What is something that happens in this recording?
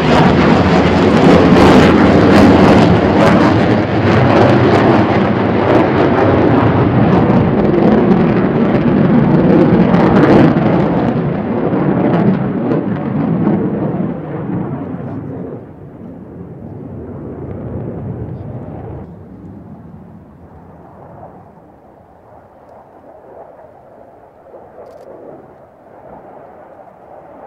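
A jet engine roars loudly overhead, then fades into a distant rumble.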